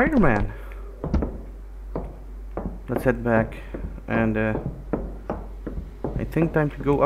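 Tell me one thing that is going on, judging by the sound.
Footsteps thud on a hard floor in an echoing hall.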